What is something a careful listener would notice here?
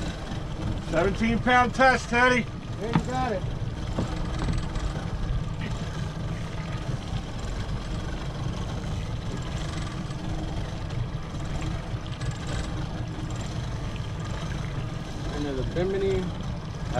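Boat engines rumble steadily.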